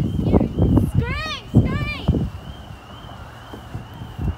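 A young child calls out nearby.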